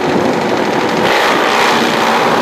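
A second motorcycle engine revs up nearby.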